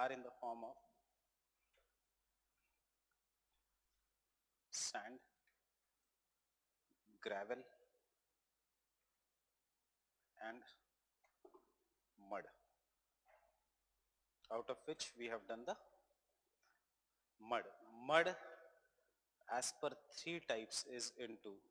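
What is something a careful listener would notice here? A man speaks calmly into a microphone in short bursts with pauses.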